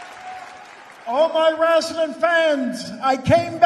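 An elderly man speaks slowly into a microphone.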